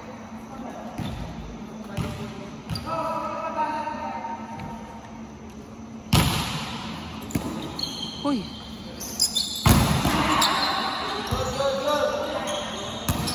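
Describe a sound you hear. A volleyball thumps off players' arms and hands in a large echoing hall.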